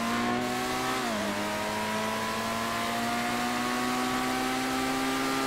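A car engine roars steadily, dips briefly as the gear shifts, then slowly climbs in pitch.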